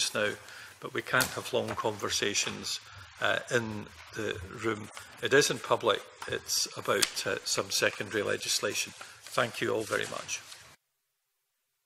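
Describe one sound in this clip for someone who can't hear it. Paper rustles as a man turns a sheet.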